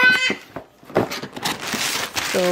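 A plastic mailer bag rustles and crinkles.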